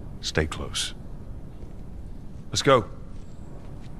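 A woman speaks firmly, close by.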